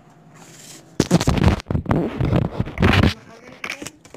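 Rough rubbing and bumping noises sound right against the microphone.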